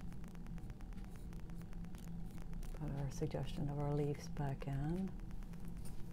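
A paintbrush strokes softly across a canvas.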